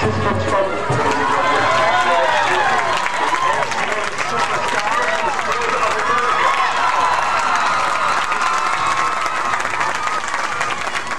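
Young women cheerleaders shout and cheer loudly together.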